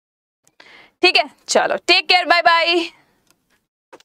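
A young woman speaks brightly and closely into a microphone.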